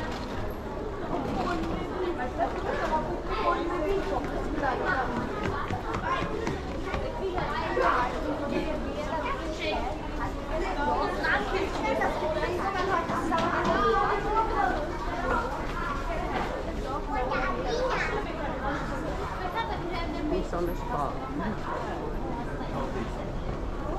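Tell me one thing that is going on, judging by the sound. Many voices chatter around in an echoing hall.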